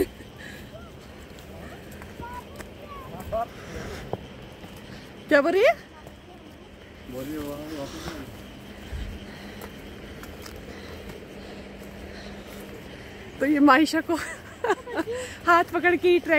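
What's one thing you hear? Footsteps scrape on rocky ground.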